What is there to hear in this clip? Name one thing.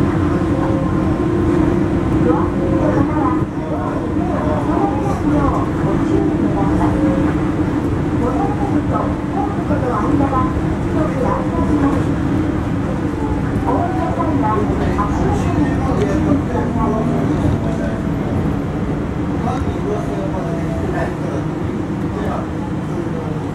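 A monorail train hums and rumbles steadily along an elevated track, heard from inside.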